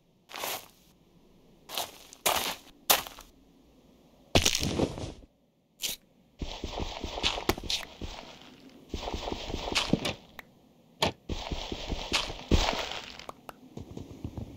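Stone blocks crack and break under a pickaxe, again and again.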